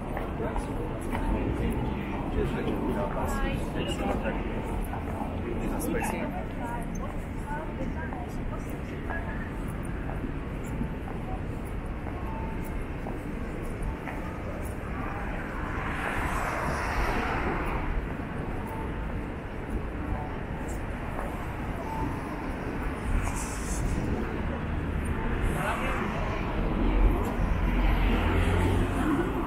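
Distant city traffic hums steadily outdoors.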